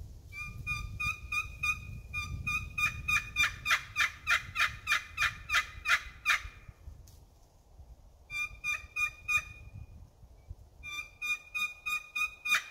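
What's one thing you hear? A hand-held game call gives rapid, high, repeated yelping notes in bursts with short pauses between.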